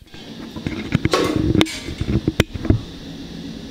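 A metal bowl clanks as it is set down on a hard floor.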